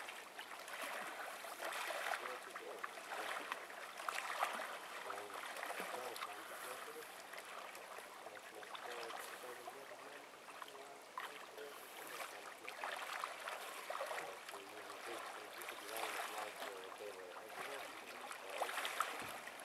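A swimmer splashes through water with steady strokes.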